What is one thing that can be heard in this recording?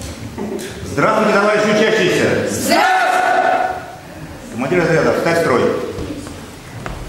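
A group of children sing together in an echoing hall.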